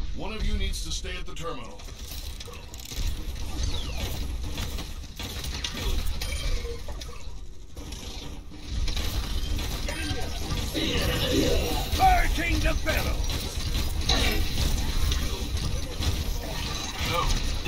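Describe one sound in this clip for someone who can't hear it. Gunfire and explosions from a game crackle and boom throughout.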